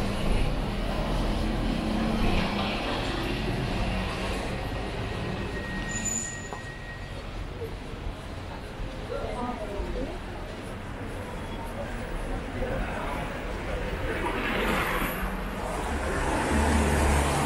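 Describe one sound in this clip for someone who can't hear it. Footsteps scuff along a pavement.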